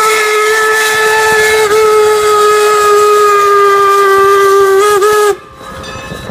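A steam locomotive's whistle blows long and loud, close by.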